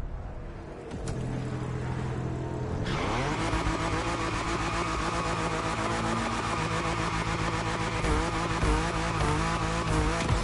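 A car engine revs loudly.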